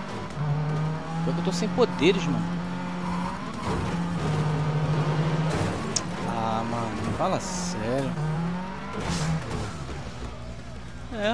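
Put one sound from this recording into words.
A rally car engine drones steadily and changes pitch as the car races along.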